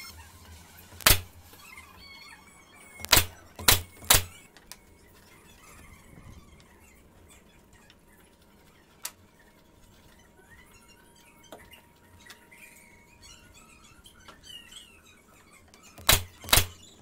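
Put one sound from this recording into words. A nail gun fires with sharp, loud snaps.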